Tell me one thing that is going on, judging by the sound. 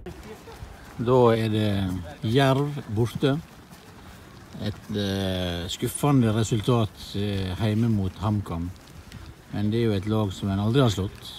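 A middle-aged man speaks calmly, close to a microphone.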